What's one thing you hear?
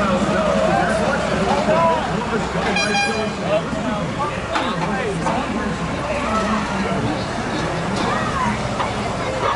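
Vehicle engines idle and rumble steadily nearby.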